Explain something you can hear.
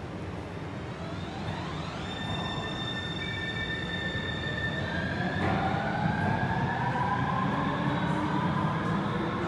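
A train pulls away behind glass doors with a rising electric whine.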